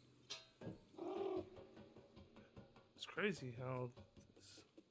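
A small monkey chatters and squeals nearby.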